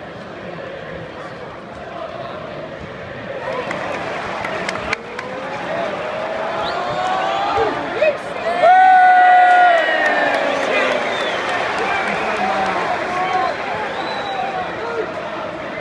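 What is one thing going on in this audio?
A large stadium crowd roars and chants outdoors.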